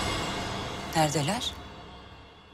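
A woman asks a short question.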